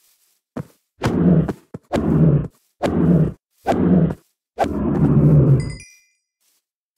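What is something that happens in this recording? A cow moos in short, loud bursts.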